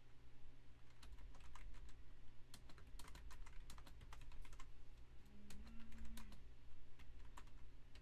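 Keys clatter rapidly.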